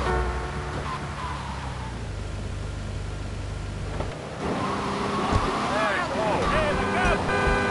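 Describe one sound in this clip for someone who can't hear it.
A car engine revs as a car speeds along a road.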